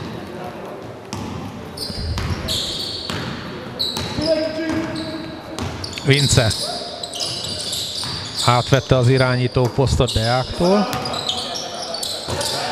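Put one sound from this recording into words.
Sneakers squeak sharply on a hard floor in an echoing hall.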